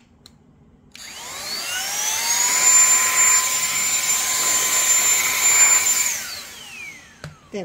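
An electric air blower spins up to a high whine, blows steadily, then winds down.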